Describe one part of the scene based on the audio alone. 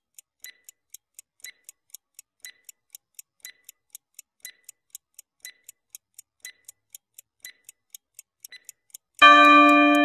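A timer ticks quickly and steadily.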